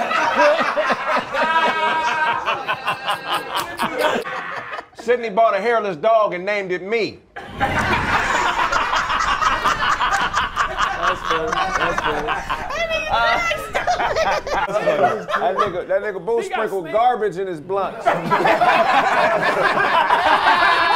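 A group of men and women laugh loudly together.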